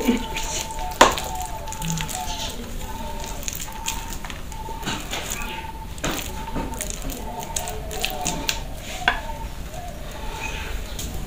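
A pestle knocks and scrapes against a metal bowl.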